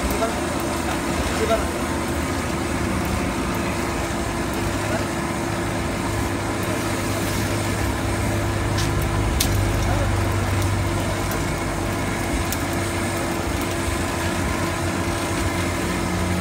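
A forge fire roars steadily.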